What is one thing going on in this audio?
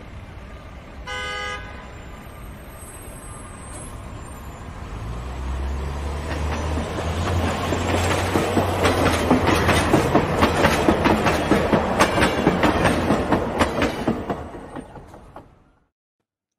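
An elevated train rumbles and clatters loudly along the tracks, growing louder as it approaches.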